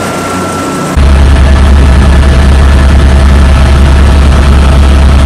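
A helicopter engine roars and thuds heavily from inside the cabin.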